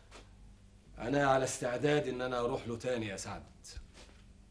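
A middle-aged man answers in a raised, emphatic voice.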